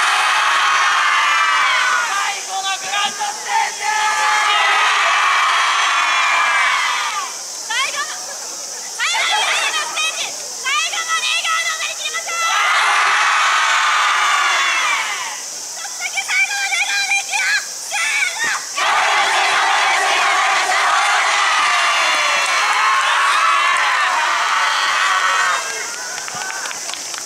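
A large group of young men and women chant and shout loudly together outdoors.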